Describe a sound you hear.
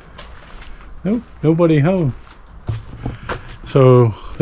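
A middle-aged man speaks close to a microphone, calmly and with pauses.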